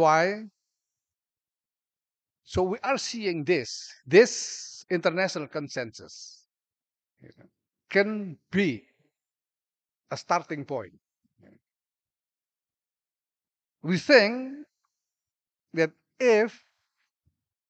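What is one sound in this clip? An older man speaks calmly through a microphone, in short phrases with pauses.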